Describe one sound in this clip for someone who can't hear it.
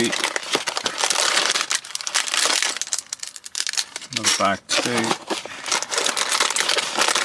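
Plastic bags crinkle and rustle in a hand.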